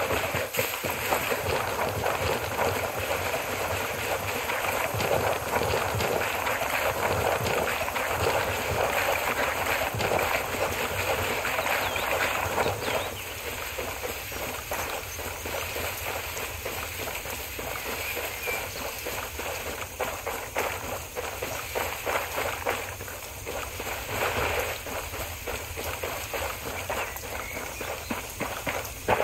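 Footsteps crunch on gravel and rustle through grass.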